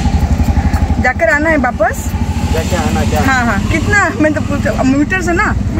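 A woman talks calmly close up.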